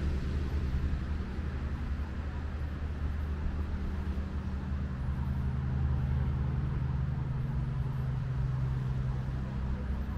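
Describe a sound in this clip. Wind rustles through the leaves of trees outdoors.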